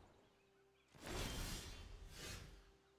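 A soft whooshing game effect sounds as the turn changes.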